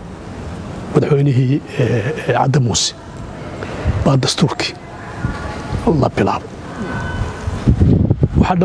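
A middle-aged man speaks with animation close to a microphone.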